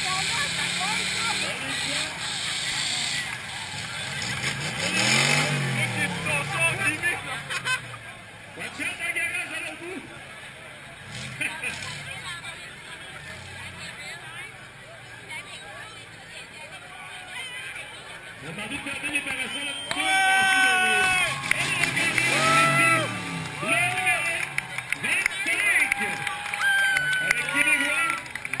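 Truck engines roar and rev loudly.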